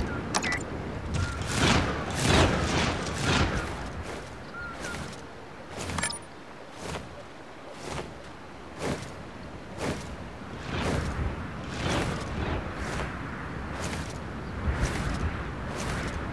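Jet thrusters whoosh in short repeated bursts.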